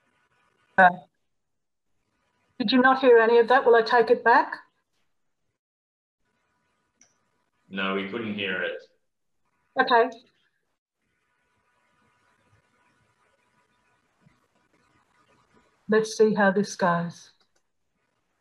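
An older woman speaks calmly through an online call.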